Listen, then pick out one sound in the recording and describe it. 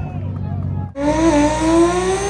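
A race car engine revs up loudly.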